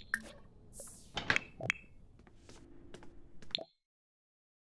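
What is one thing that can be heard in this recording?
Playful game sound effects chime and pop, then fall silent.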